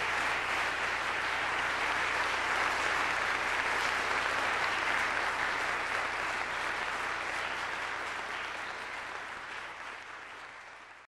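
An audience applauds in a large echoing hall, slowly fading.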